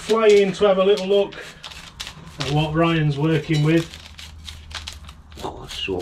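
A small hand tool scrapes and scratches through soil.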